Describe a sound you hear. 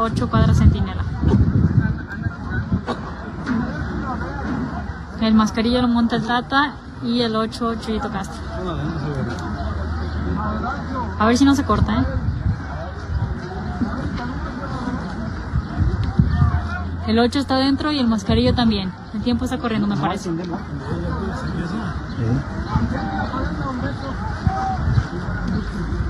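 A large outdoor crowd murmurs and chatters.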